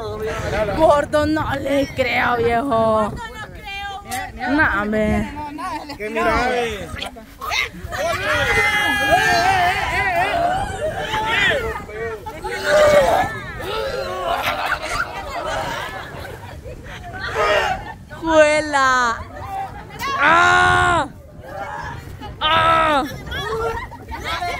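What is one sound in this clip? A crowd of men and women talks and shouts loudly outdoors, close by.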